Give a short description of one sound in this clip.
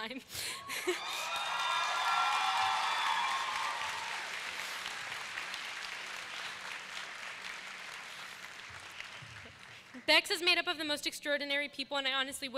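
A young woman speaks emotionally through a microphone in a large echoing hall.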